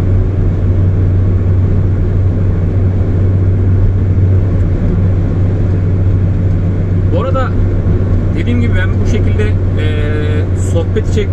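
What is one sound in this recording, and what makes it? Tyres roar steadily on the road from inside a moving car.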